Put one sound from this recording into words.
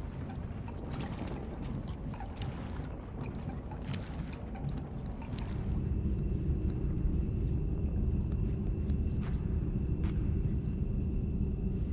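Small footsteps patter on a wooden floor.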